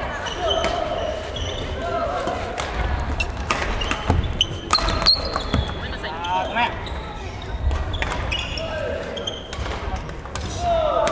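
Sneakers squeak sharply on a wooden court floor.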